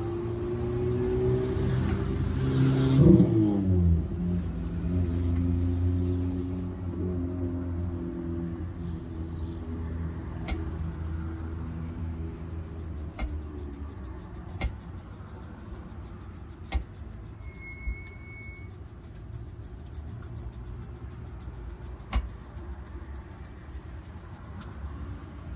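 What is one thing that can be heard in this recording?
A stiff brush scrubs back and forth over a leather shoe.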